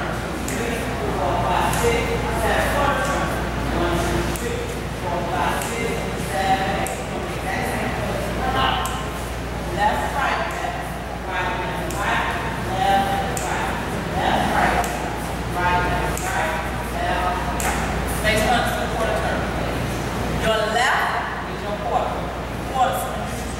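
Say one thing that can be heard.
A woman calls out instructions with animation in a large echoing room.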